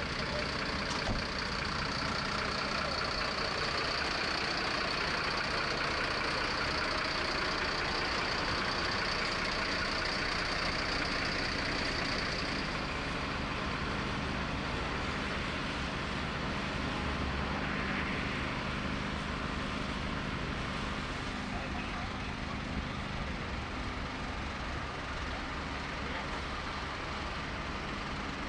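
A diesel engine idles steadily nearby.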